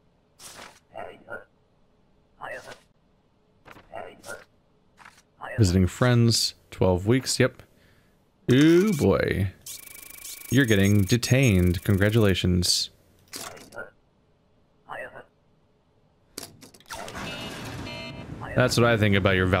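Papers shuffle and slide on a desk.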